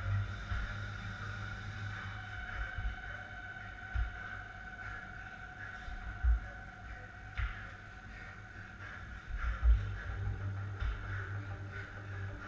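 A man doing burpees thuds onto a rubber floor.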